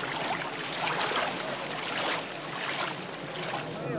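Water splashes as a boat is pushed through the shallows.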